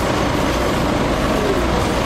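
A bus engine rumbles nearby in city traffic.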